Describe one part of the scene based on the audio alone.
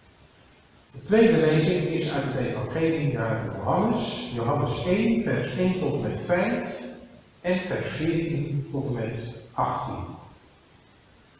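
A middle-aged man reads aloud calmly into a microphone in a room with some echo.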